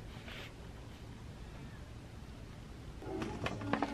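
Paper pages rustle softly as a book is handled.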